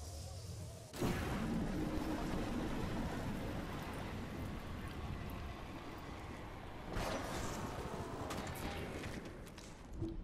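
Wind rushes loudly past during a fast fall.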